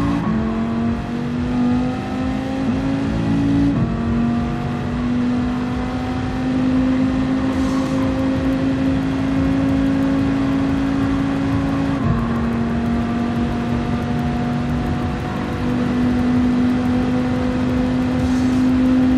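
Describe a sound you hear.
A racing car engine roars at high revs, rising in pitch and dropping briefly at each gear change.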